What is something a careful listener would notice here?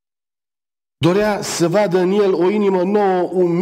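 A middle-aged man reads aloud calmly through a microphone in an echoing hall.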